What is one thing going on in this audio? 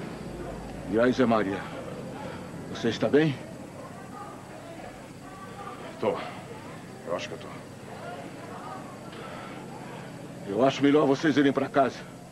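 A man speaks in short, forceful bursts close by.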